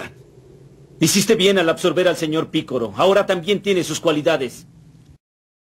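A young man speaks firmly and calmly.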